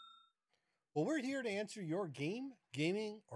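A man speaks with animation through a microphone on an online call.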